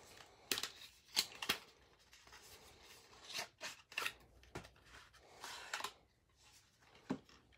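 Plastic card sleeves rustle and click as hands handle them.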